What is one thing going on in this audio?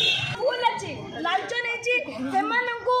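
A young woman speaks loudly and with animation close by.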